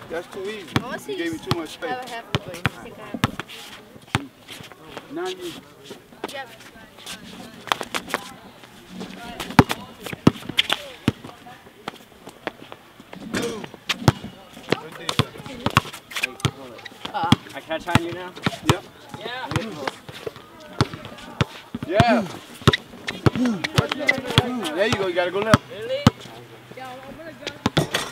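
Basketballs bounce sharply on an outdoor court.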